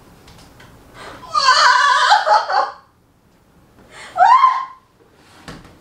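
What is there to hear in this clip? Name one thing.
A woman cries out loudly in pain close by.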